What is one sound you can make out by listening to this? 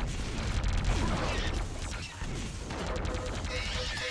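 A buzzing energy beam hums.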